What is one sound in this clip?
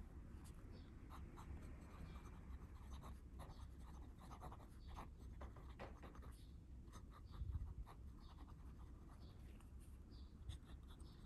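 A fountain pen nib scratches softly across paper.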